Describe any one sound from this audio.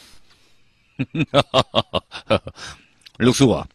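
An older man laughs heartily.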